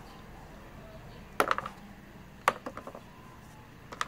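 Small clumps of soil drop into a plastic planter with light taps.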